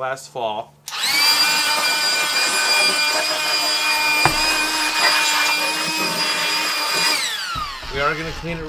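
A leaf blower motor whirs loudly with a steady high whine, then winds down.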